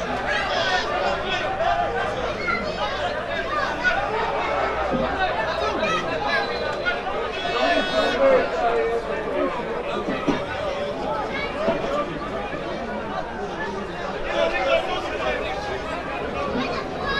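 Several men shout and argue at a distance outdoors.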